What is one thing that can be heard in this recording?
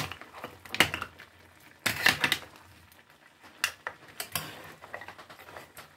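Seafood sizzles in a hot pan.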